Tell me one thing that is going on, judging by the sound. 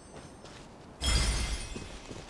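A magical whoosh swells up suddenly and sparkles away.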